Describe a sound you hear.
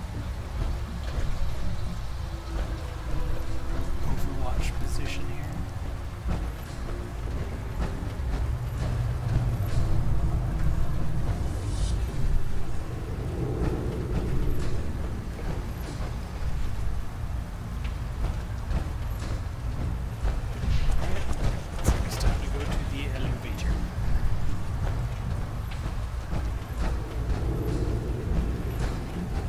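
Heavy metal footsteps clank slowly on a hard floor.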